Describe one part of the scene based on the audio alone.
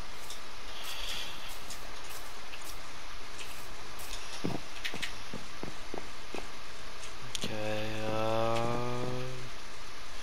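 Footsteps thud softly on grass and wooden floorboards.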